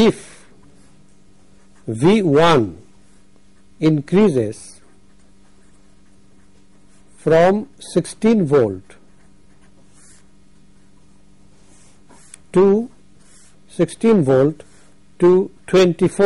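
A felt marker scratches softly across paper.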